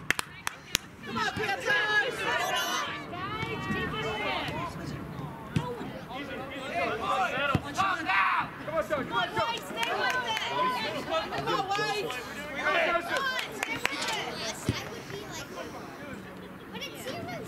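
Young players shout and call to each other across an open outdoor field.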